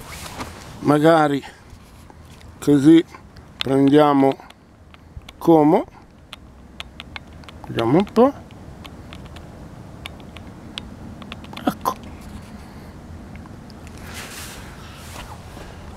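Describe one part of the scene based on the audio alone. Water laps gently against a stone embankment.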